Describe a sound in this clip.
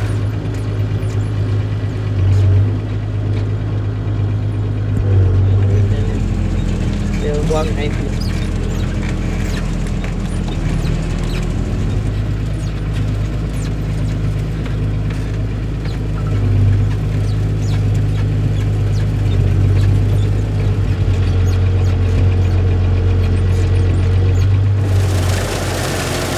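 A hay tedder rattles and clanks as its tines turn.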